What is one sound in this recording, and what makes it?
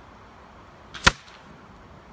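A bullet strikes a metal target plate with a single sharp clang.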